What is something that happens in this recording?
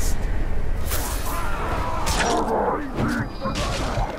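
Blades clash and strike sharply during a fight.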